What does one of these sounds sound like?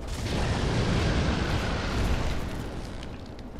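Fire bursts and roars in a blast of flame.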